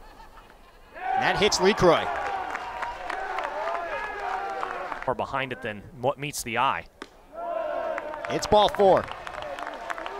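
A crowd cheers outdoors.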